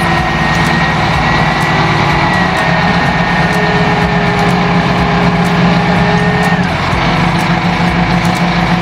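A heavy engine rumbles and whines steadily close by.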